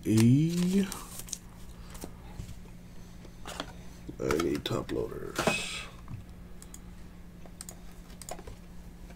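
Trading cards rustle and tap as hands handle them.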